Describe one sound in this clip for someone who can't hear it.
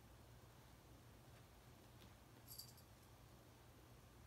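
A cat scuffles and scratches softly nearby.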